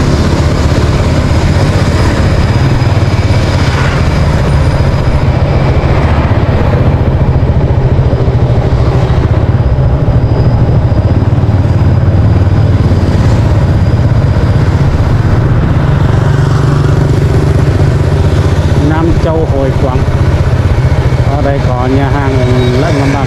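A motorbike engine hums steadily close by as it rides along.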